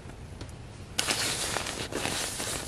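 A nylon down jacket rustles loudly up close.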